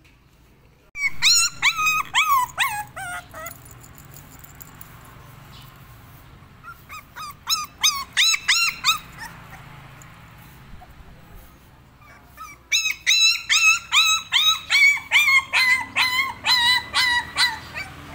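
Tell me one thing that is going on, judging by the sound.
A puppy whines and yelps in high, repeated cries.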